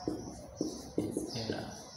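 A marker squeaks as it writes on a whiteboard.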